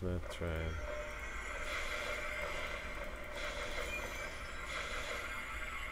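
A bright magical chime shimmers and rings on.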